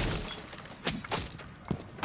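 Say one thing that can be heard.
A wall bursts apart with a loud crash and falling debris.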